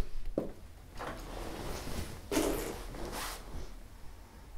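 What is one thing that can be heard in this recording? A young woman breathes heavily and deeply close by.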